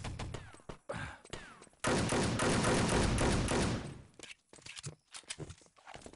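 Pistol shots ring out in quick succession.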